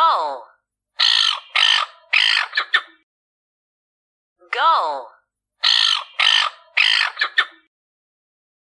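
A gull calls in sharp, loud cries.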